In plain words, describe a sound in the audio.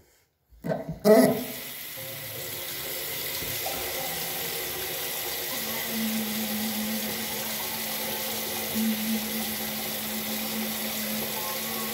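An electric toothbrush buzzes steadily.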